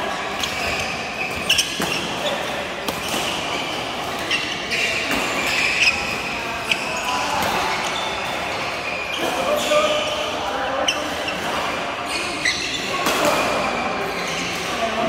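Rackets smack shuttlecocks again and again in a large echoing hall.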